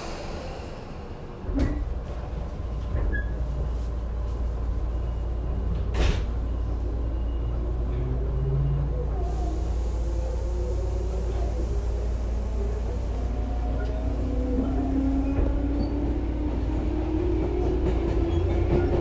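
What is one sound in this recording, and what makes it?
A train rumbles along the tracks toward the listener.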